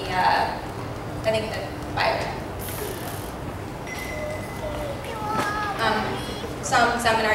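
A young woman speaks clearly through a microphone and loudspeakers.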